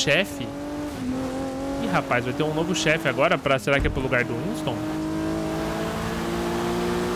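A car engine revs and accelerates.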